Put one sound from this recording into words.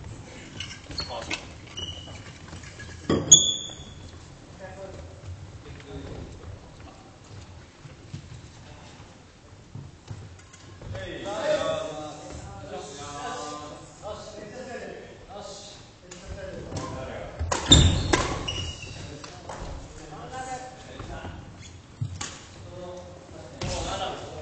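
Shuttlecocks are struck sharply with rackets in a large echoing hall.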